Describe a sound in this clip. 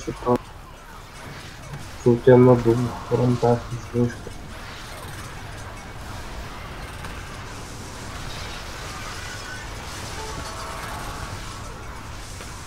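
Magic bolts crackle and zap in a battle.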